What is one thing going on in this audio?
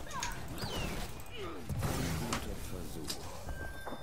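An electric beam zaps and buzzes.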